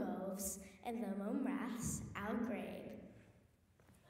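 A young girl sings into a microphone.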